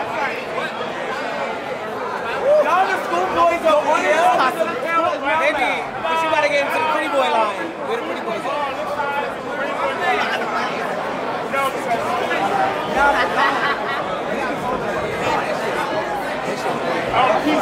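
A large crowd of men and women talks and cheers loudly in an echoing hall.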